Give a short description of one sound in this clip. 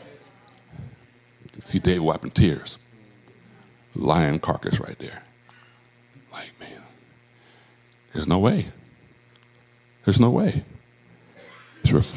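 A man speaks slowly and thoughtfully into a microphone, heard through loudspeakers in a large room, with long pauses.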